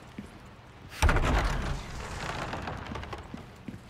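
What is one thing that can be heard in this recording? A heavy wooden door creaks and swings open.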